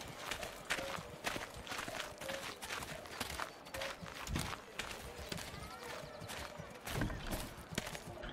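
Footsteps crunch softly on a dirt path.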